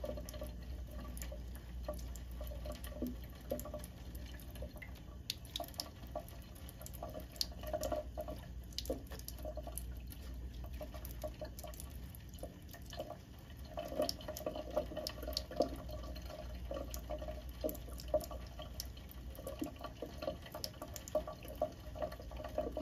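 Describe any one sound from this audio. A cat laps water with quick little licks.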